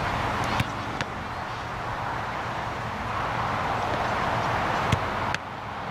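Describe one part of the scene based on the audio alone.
Gloves slap as a soccer ball is caught.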